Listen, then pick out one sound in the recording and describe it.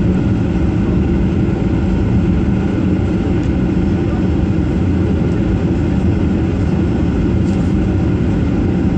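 An engine rumbles steadily, heard from inside a moving vehicle.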